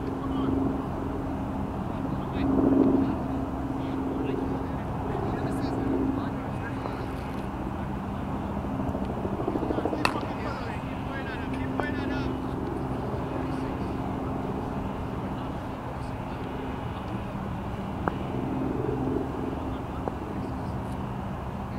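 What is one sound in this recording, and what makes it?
Wind blows across an open field outdoors.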